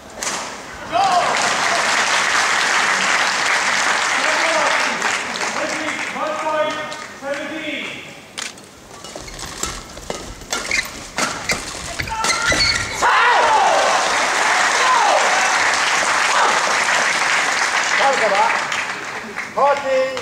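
A large crowd cheers and applauds in an echoing hall.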